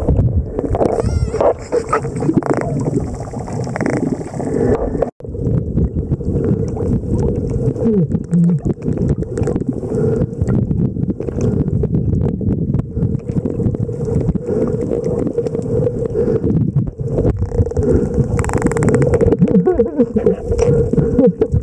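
Dolphins whistle and chirp underwater.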